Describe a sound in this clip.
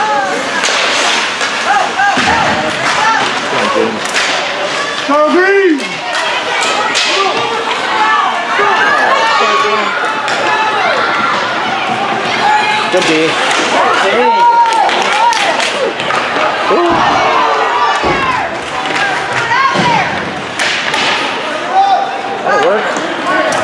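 Spectators cheer and shout in a large echoing rink.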